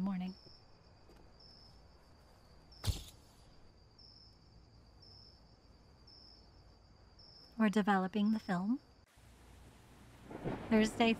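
A young woman talks.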